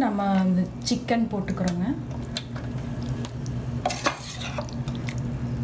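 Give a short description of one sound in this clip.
A spatula scrapes and pushes food across a metal baking tray.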